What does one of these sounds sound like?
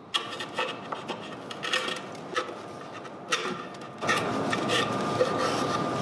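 A chisel scrapes and pares wood.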